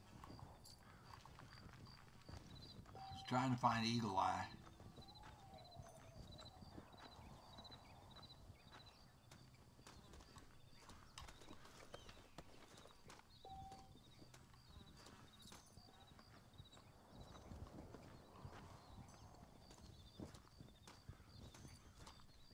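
An elderly man talks calmly into a microphone.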